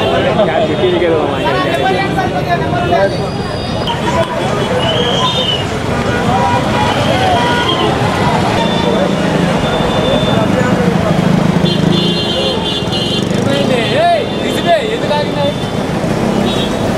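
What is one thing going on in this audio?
A crowd of men talks loudly outdoors.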